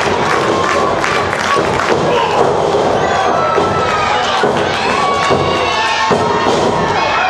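Bodies thud onto a wrestling mat.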